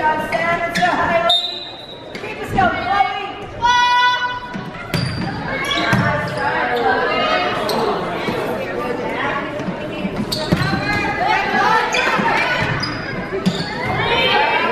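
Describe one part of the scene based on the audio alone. A volleyball thuds off players' arms and hands.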